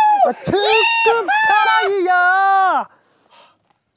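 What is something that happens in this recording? A young man yells a long, high whoop up close.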